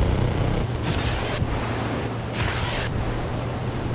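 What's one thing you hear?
Missiles fire with whooshing blasts.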